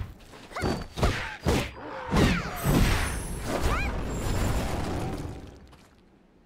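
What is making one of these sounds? Blades swing and strike with heavy whooshes and clangs.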